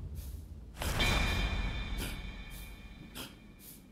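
A bright chime rings and slowly fades.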